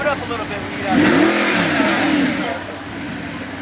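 A sports car engine revs loudly and briefly.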